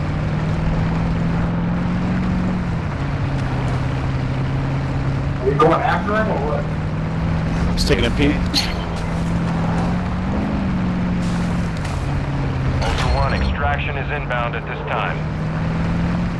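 A truck engine hums steadily, rising and falling in pitch as it drives over rough ground.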